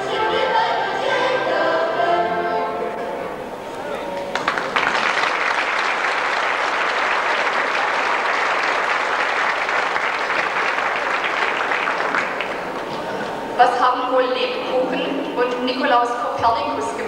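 A choir of young women sings together through a microphone.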